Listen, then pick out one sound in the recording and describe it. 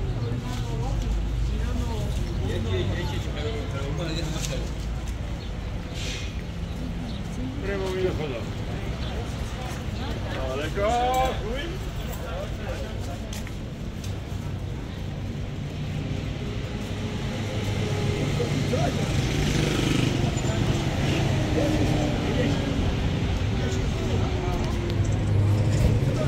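Traffic hums steadily along a busy street.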